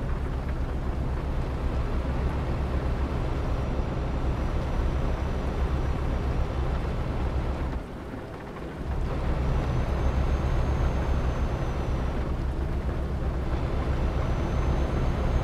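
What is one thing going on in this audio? A heavy truck engine rumbles steadily, dipping briefly.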